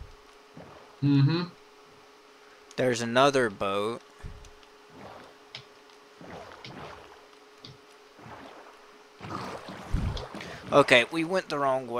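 Oars splash softly as a small boat rows through water.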